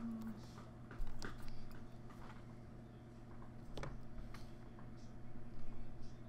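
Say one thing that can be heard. Small plastic pieces tap and slide on a soft mat.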